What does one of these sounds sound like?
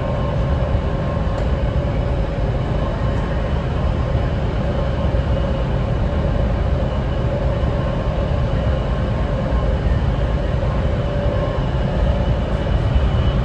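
A train rumbles and roars steadily as it travels along the track.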